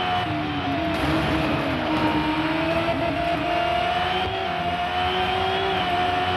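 A racing car engine whines at high revs.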